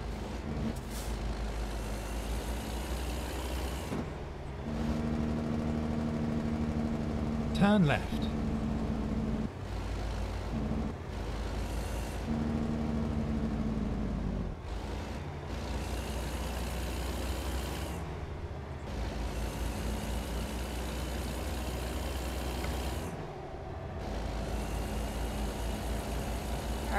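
A truck's diesel engine rumbles steadily.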